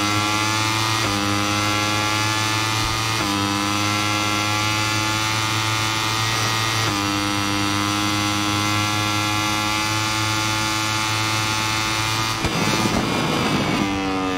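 A motorcycle engine screams at high revs, dropping in pitch briefly with each upshift.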